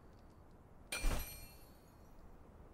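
A menu chimes sharply as it opens.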